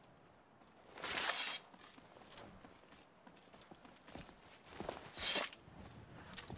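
A blade whooshes through the air.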